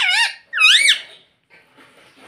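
A parrot screeches loudly and sharply close by.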